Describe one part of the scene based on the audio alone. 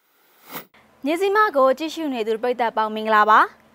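A young woman speaks clearly and calmly into a microphone.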